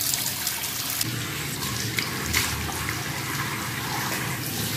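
A young man splashes water on his face.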